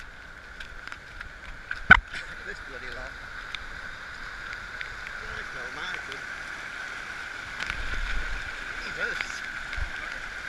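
A stream rushes and splashes down a rocky slope.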